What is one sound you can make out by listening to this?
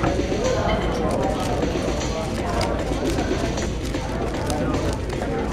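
A speed cube clicks as its layers are turned rapidly.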